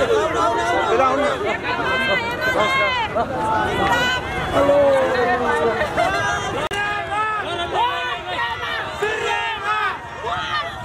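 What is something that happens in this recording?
A large crowd of men and women chants and cheers loudly outdoors.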